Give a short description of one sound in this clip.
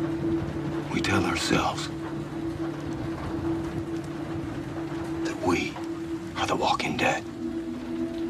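A man speaks in a low, quiet voice nearby.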